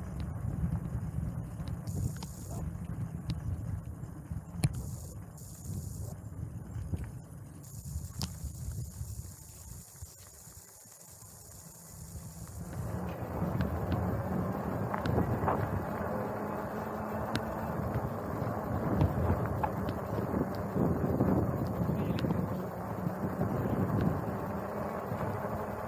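Tyres roll steadily over rough pavement.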